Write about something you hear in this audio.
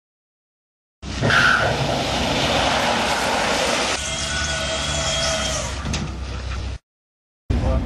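Race cars roar down a drag strip.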